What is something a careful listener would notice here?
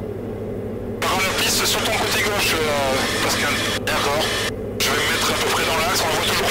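A man talks over a headset intercom.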